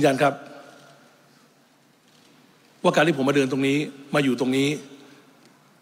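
A man speaks formally through a microphone.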